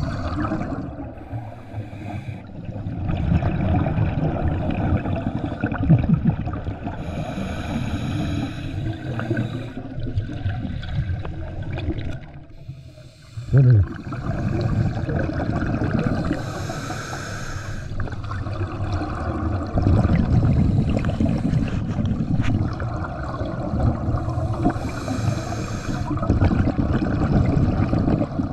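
A diver's breathing rasps steadily underwater.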